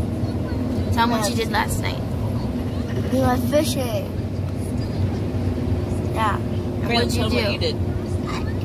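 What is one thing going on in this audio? A young woman speaks casually close by.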